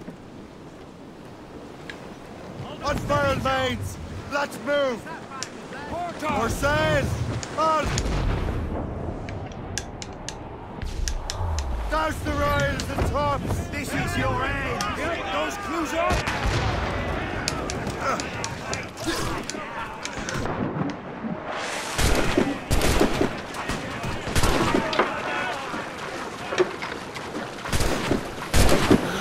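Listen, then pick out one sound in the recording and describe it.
Wind and waves roar at sea.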